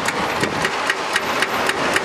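Heavy diggers rumble and scrape at a building site outdoors.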